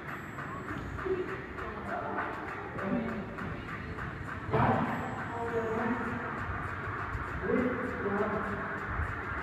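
Young men talk in an echoing room.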